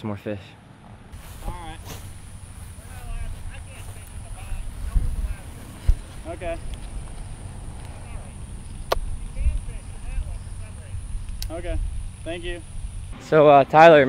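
Wind rumbles and buffets against the microphone outdoors.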